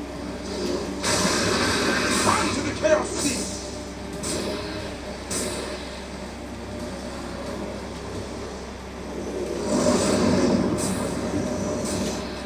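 Crackling magical blasts whoosh and roar in bursts.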